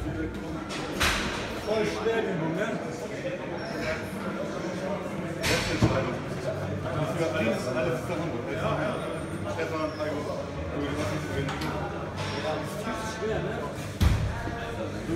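Metal dumbbells clank against a rack.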